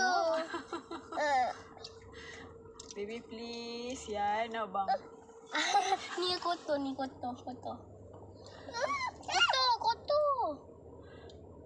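A little girl talks in a high, chattering voice close by.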